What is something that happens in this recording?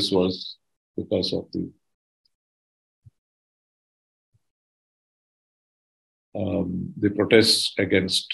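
An elderly man speaks calmly over an online call, pausing between phrases.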